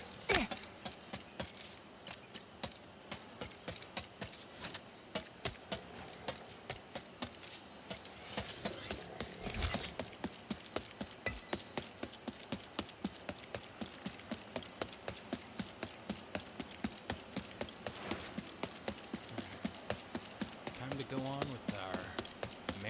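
Quick footsteps patter steadily on the ground.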